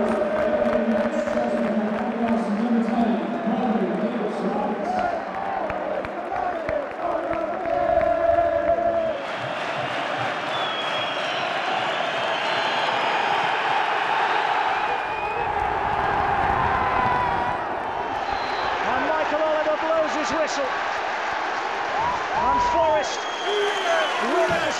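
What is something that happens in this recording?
A crowd claps along.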